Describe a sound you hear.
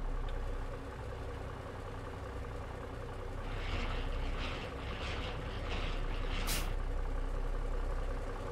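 A heavy truck engine rumbles steadily nearby.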